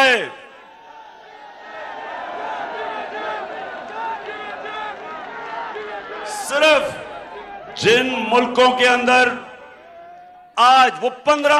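A middle-aged man shouts forcefully into a microphone over loudspeakers.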